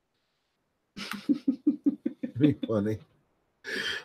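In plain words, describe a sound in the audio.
A young woman laughs through an online call microphone.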